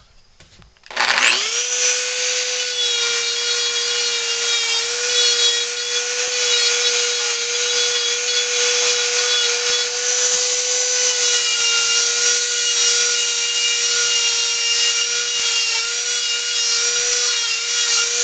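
A rotary tool starts up with a rising whine and then buzzes steadily at high speed.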